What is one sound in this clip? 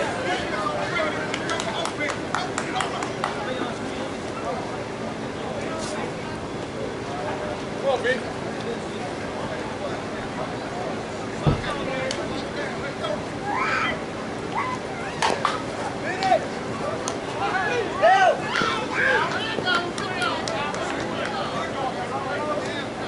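Adult men shout and call out across an open field.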